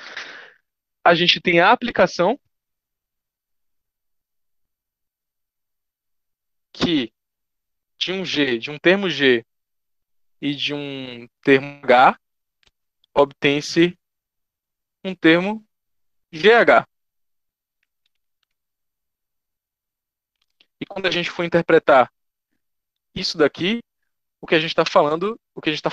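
A man speaks calmly and in short bursts through a microphone.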